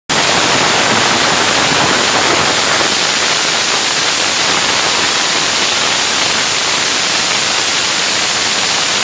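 Firecrackers crackle and pop in a rapid, continuous barrage close by.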